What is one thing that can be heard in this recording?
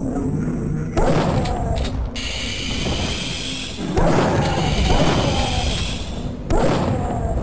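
A shotgun fires loud blasts that echo.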